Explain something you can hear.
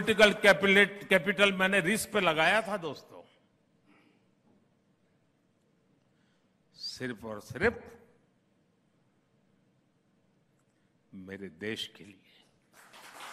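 An elderly man speaks slowly and emphatically through a microphone and loudspeakers, pausing often.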